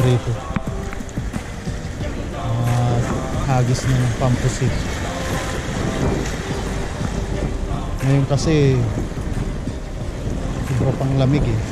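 Waves wash and splash against rocks close by.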